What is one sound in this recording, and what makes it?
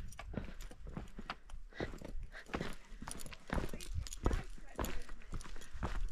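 A young woman talks breathlessly into a close microphone.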